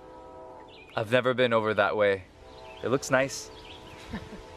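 A young man speaks warmly close by.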